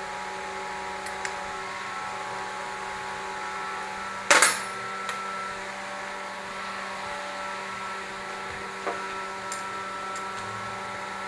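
Metal parts clink and clatter as they are handled.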